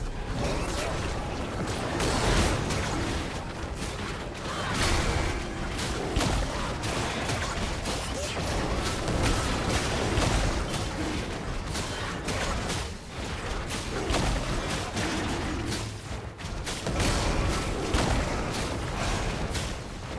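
Game spell effects and attacks crackle and boom in quick bursts.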